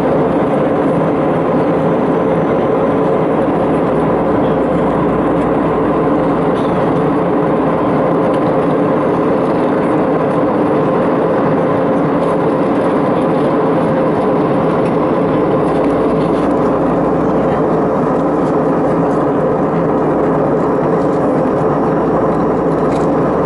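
A jet airliner's engines roar with a steady drone inside the cabin.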